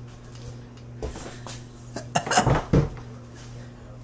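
A cardboard box thumps and scrapes as it is handled.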